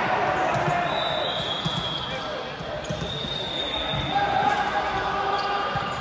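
Young women call out to each other in a large echoing gym.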